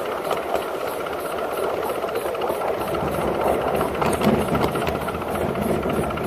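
A small steam locomotive chuffs rhythmically as it runs along a track.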